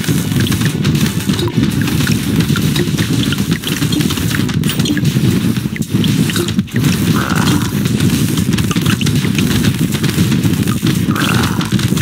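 Rapid gunfire crackles without pause.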